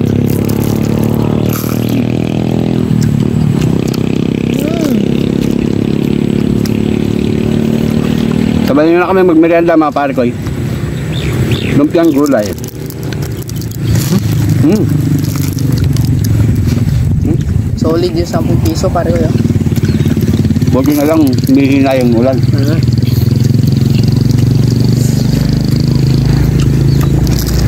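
People chew and smack their lips loudly.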